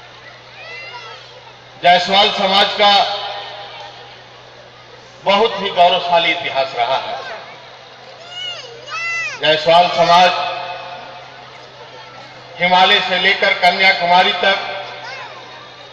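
An elderly man speaks forcefully through a loudspeaker with an echo.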